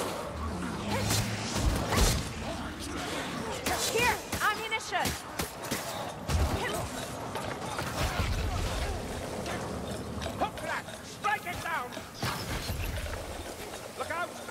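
Blades swing and strike with sharp slashing hits.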